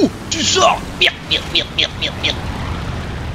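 Machine guns fire in short bursts.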